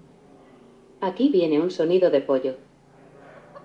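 A woman's voice speaks calmly through a small loudspeaker.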